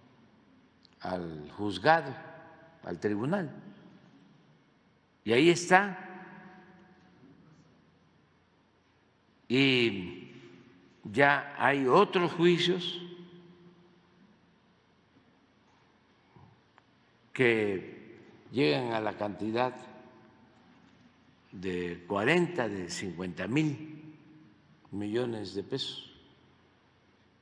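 An elderly man speaks slowly and firmly into a microphone, in bursts with pauses, in a large echoing room.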